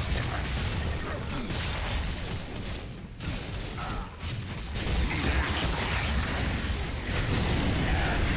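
Explosions boom and scatter debris.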